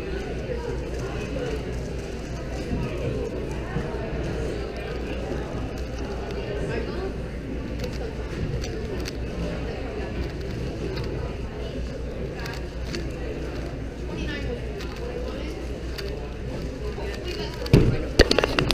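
A puzzle cube clicks and rattles as it is turned quickly.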